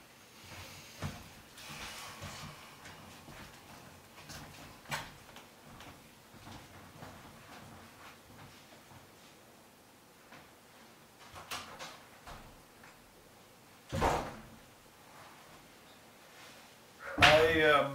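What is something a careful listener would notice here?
Footsteps walk slowly across a wooden floor indoors.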